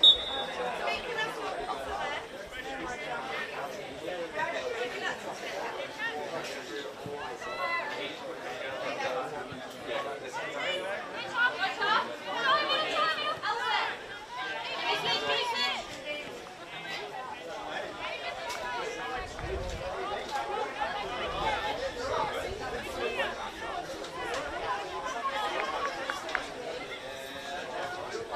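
Players call out to each other across an open field.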